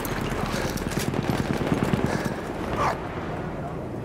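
Horse hooves thud on dry ground.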